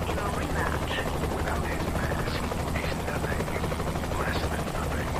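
A helicopter's rotors whir steadily.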